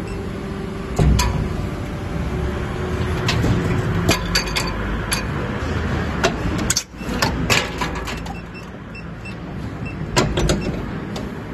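Metal parts clank and knock now and then.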